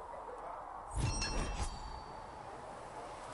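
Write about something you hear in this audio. A chiming jingle rings out as an item is crafted.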